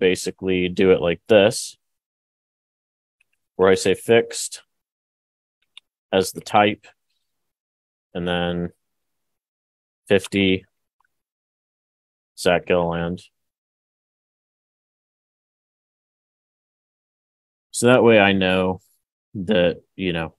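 A man speaks calmly through a microphone, in short phrases with long pauses.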